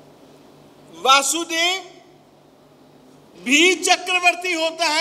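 An elderly man speaks calmly and expressively into a microphone.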